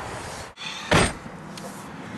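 A car door shuts with a thud.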